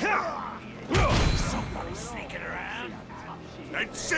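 Swords clash and strike in a close fight.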